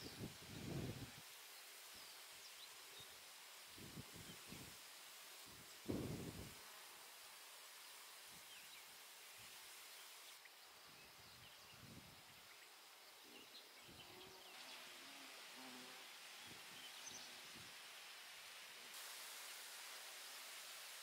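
Wind gusts outdoors, rustling reeds and grass.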